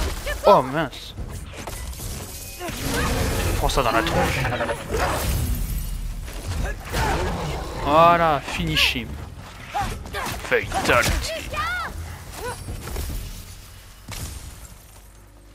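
Magic blasts and arrows burst with loud whooshing crashes.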